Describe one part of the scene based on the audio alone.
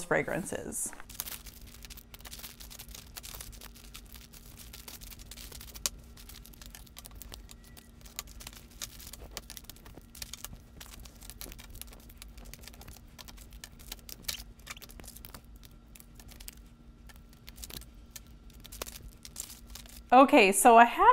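Plastic wrappers crinkle and rustle.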